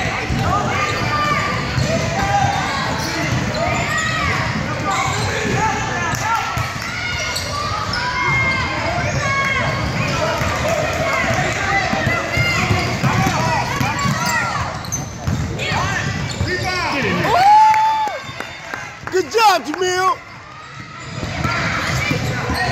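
A crowd of people chatters and calls out in a large echoing gym.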